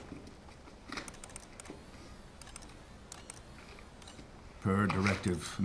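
A man taps keys on a keyboard.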